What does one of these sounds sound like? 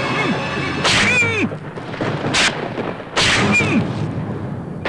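A man cries out in distress.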